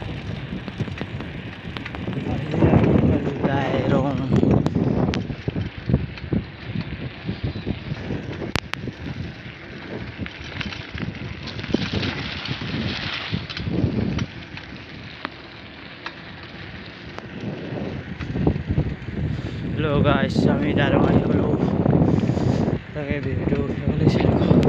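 Wind rumbles against the microphone in gusts.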